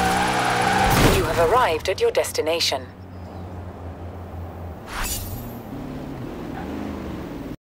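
A car engine roars loudly and revs up and down.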